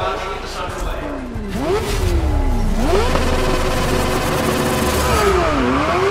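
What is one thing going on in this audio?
A racing car engine whines and revs up through its gears.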